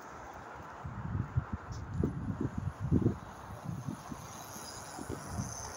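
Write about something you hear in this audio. A bicycle rolls past with a soft whir of tyres.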